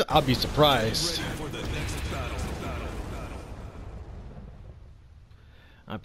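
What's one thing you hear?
Flames roar and crackle in a dramatic burst.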